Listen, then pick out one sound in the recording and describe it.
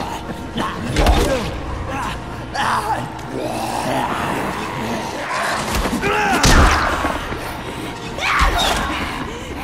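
Heavy blows thud and crunch against a body.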